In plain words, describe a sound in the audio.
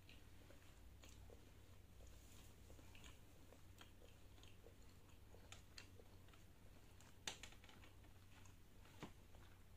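A young woman chews food with soft, wet mouth sounds close to a microphone.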